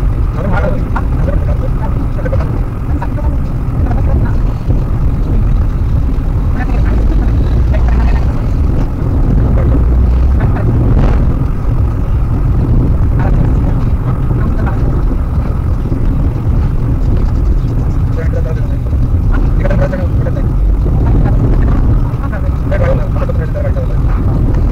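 Tyres rumble steadily on a paved road.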